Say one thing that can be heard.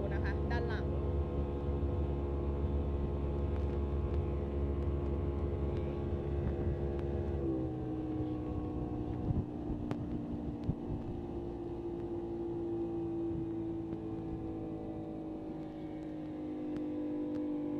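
A boat engine drones steadily, dropping in pitch partway through.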